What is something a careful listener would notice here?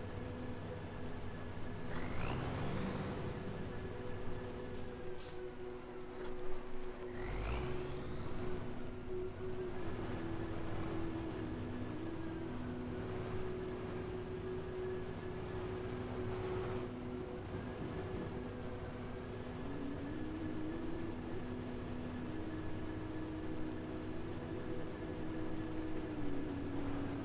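Truck tyres crunch over rough rocky ground.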